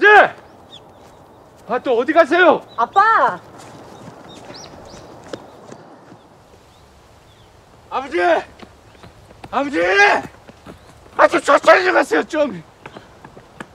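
A man shouts out loudly outdoors.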